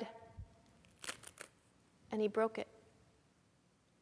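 Thin bread cracks as it is broken in two.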